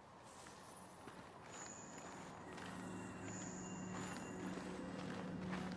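Footsteps tread on rough ground.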